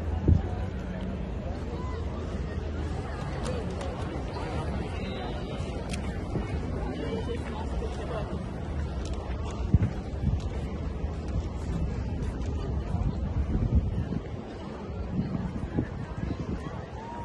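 Wind blows against the microphone.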